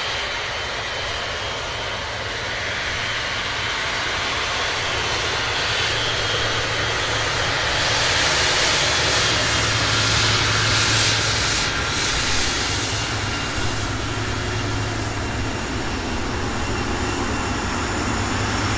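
Wind buffets across open ground.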